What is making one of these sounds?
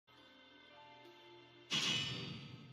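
Soft eerie music plays.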